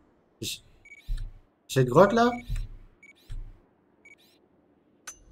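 Soft menu clicks blip now and then.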